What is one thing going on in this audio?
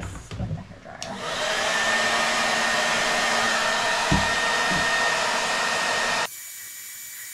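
A spray can hisses in a steady burst.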